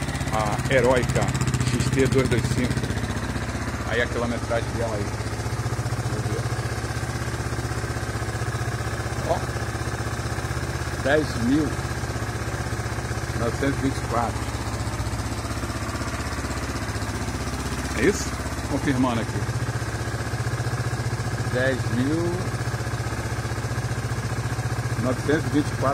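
A motorcycle engine idles with a steady low rumble.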